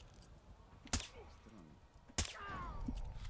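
A silenced rifle fires with sharp muffled shots.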